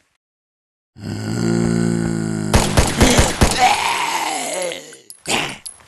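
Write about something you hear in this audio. A zombie groans and growls.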